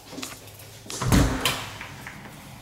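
A door latch clicks and a door swings open.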